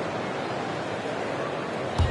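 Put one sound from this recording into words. A large crowd murmurs steadily in an echoing arena.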